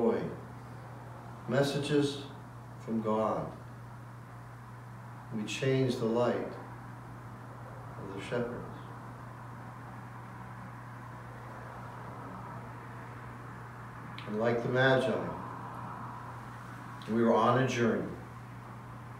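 A man speaks calmly and slowly, in short phrases with pauses, close by.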